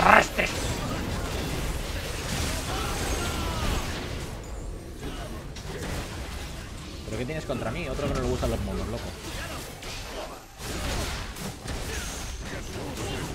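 Game spell effects whoosh and crackle during a fight.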